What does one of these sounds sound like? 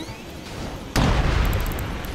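A fiery blast bursts with a loud whoosh.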